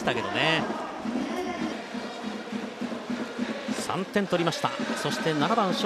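A large stadium crowd murmurs and chants steadily in the distance.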